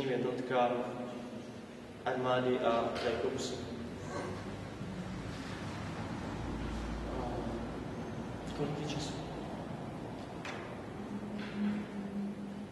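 A young man speaks calmly and hesitantly, close to a microphone.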